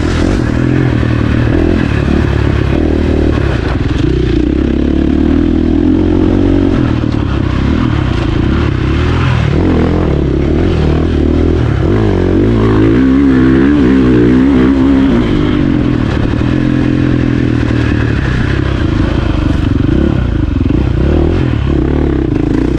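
A dirt bike engine roars up close, revving up and down.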